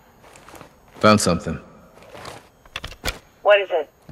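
A rifle clicks and rattles as it is raised.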